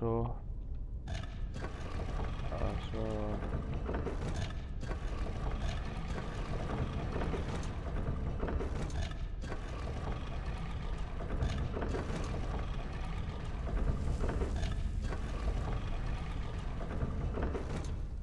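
Heavy stone rings grind and rumble as they turn.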